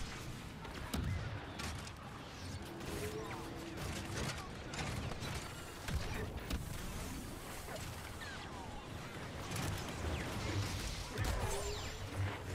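Blaster fire zaps and cracks rapidly.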